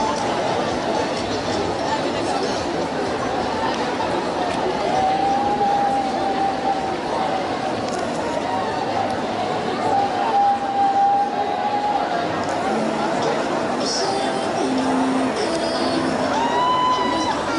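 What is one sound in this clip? A large crowd of women chants and shouts outdoors.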